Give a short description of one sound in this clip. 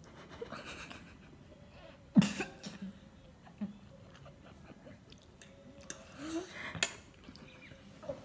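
A boy slurps noodles noisily.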